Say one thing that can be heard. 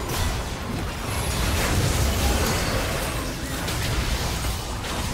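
Spell effects whoosh and crackle in a fast fight.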